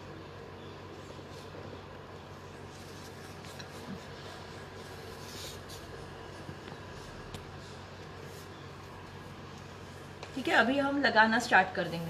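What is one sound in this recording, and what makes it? A wooden stick stirs thick paint in a plastic cup, scraping softly.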